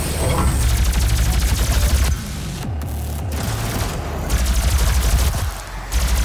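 A plasma gun fires rapid crackling bursts.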